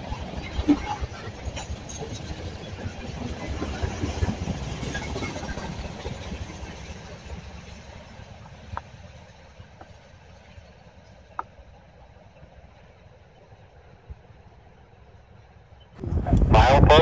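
A freight train of tank cars rumbles past on the tracks and slowly fades into the distance.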